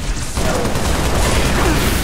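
Gunshots crack rapidly in bursts.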